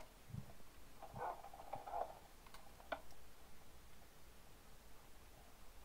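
Soft game clicks sound as items are moved around an inventory menu.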